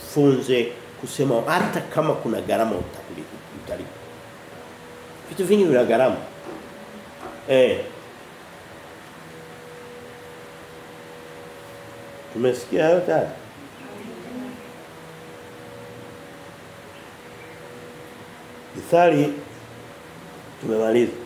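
A middle-aged man speaks with animation in short bursts, close by.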